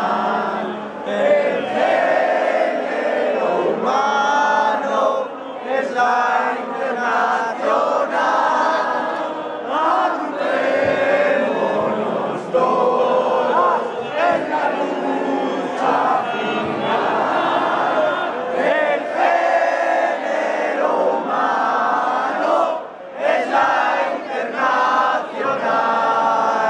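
A large crowd of protesters chants and shouts loudly outdoors.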